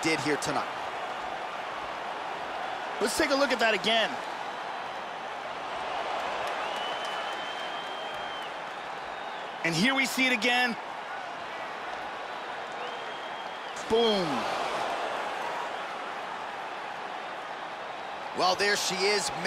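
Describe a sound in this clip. A large crowd cheers and murmurs in an echoing arena.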